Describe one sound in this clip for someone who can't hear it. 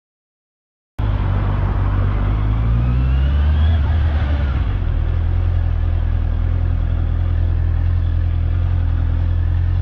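A sport motorcycle engine hums while riding along a street.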